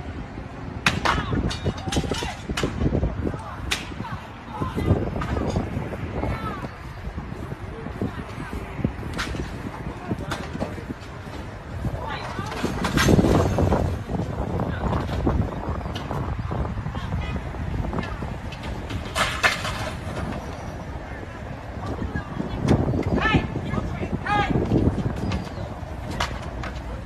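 Glass and wood bang and crash as a shop front is broken into.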